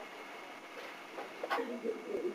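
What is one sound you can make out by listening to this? A young woman murmurs sleepily close by.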